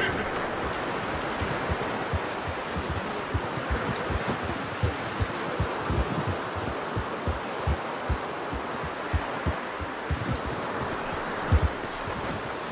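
Horse hooves thud steadily through snow.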